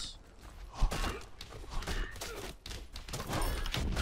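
Blades swish and strike in a fight.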